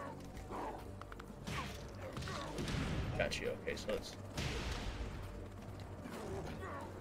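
Heavy blows thud in a fighting game.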